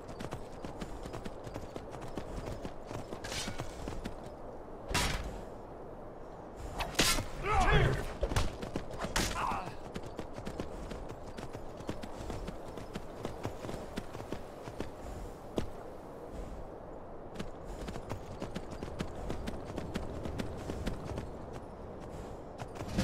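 A horse gallops, its hooves thudding on snow.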